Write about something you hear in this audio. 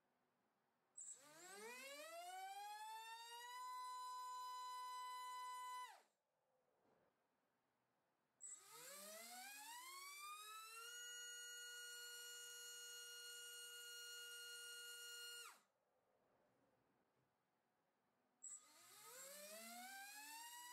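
A small electric motor spins up a propeller with a rising whine, holds a steady high whine, then stops sharply.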